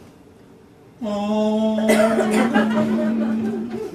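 A man sings loudly in a high, held voice.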